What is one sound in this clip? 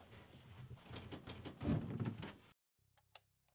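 An interior door swings open.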